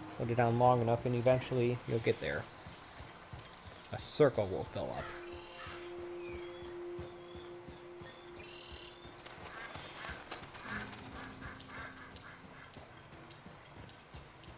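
A horse's hooves clop on gravel.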